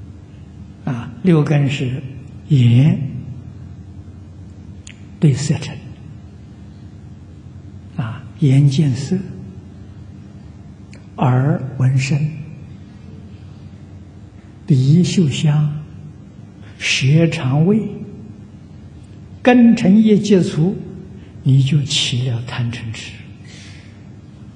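An elderly man speaks slowly and calmly into a microphone, in short phrases with long pauses.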